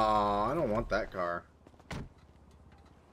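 A car door opens and shuts with a thud.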